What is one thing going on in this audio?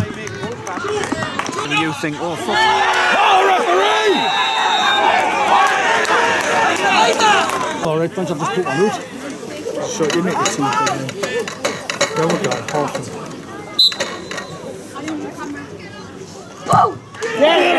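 Men shout and call out excitedly close by, outdoors.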